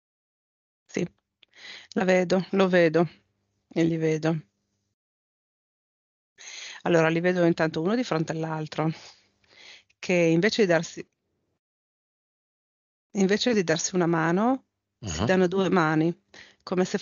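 A man speaks calmly into a headset microphone, in short bursts with pauses.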